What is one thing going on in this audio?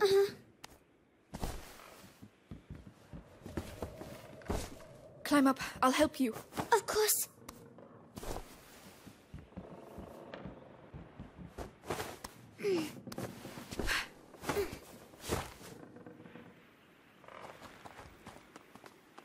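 Footsteps scuff on wooden boards and stone.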